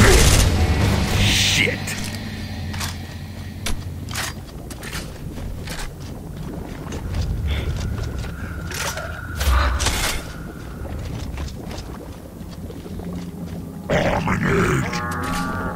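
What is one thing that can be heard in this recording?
Heavy footsteps crunch on rock.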